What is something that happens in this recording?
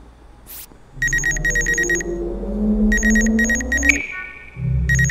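An electronic scanner beeps in rapid bursts of pulses.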